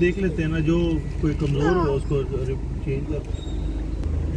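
A young child babbles in a high, singsong voice close by.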